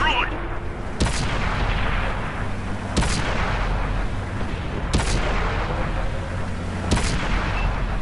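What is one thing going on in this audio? Tank cannon shots boom at even intervals.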